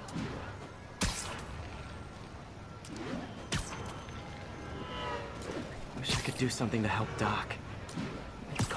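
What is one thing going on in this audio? A web line shoots out with a sharp snap.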